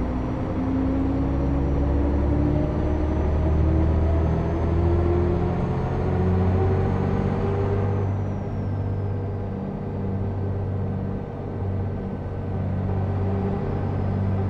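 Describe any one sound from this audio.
A bus engine hums steadily as the bus drives along, its pitch rising then easing off after a few seconds.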